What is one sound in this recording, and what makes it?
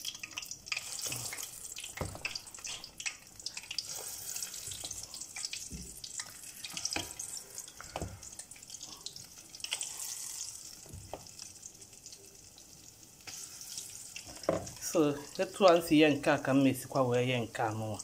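Oil sizzles and bubbles steadily in a pot.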